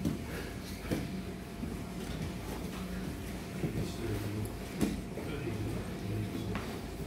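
Cloth rustles as two men grapple.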